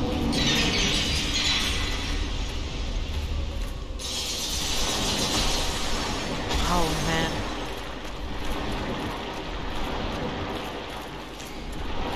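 A young man talks into a headset microphone.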